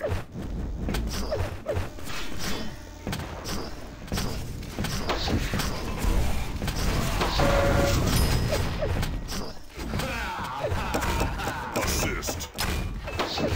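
Video game gunshots crack in quick bursts.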